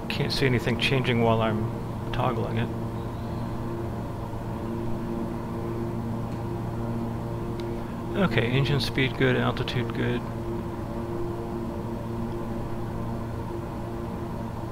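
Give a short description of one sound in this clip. Aircraft engines hum steadily.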